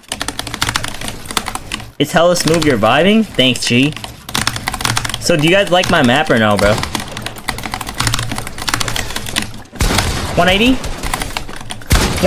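Rapid clattering building sounds from a video game play throughout.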